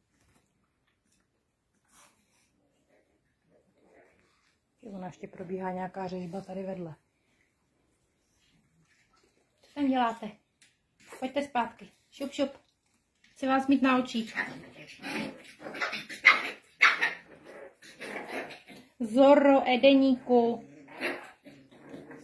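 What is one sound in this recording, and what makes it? Small puppies' paws patter on a hard floor.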